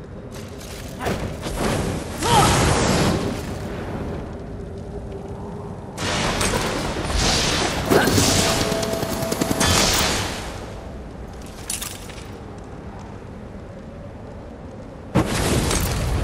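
Flames burst with a loud roaring whoosh.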